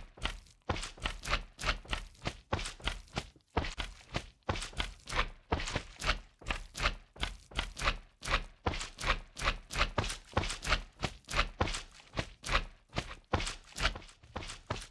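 A game creature squelches as it bounces close by.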